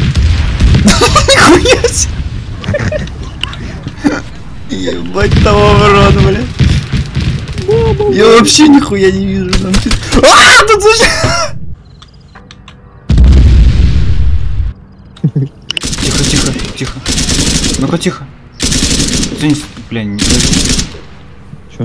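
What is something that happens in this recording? Rifle shots crack loudly.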